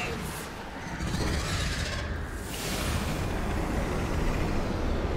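A deep, roaring magical rumble surges and swirls.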